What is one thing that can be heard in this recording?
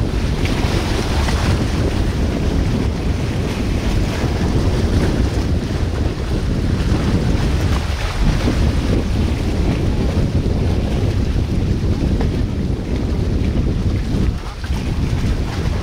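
Water rushes and splashes over rocks close by.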